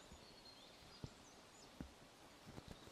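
Dry leaves rustle under a hand.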